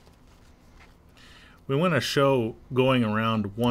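Cloth rustles softly as hands smooth and lift it.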